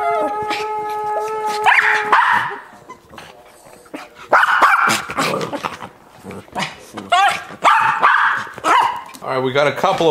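Small dogs bark and yelp excitedly close by.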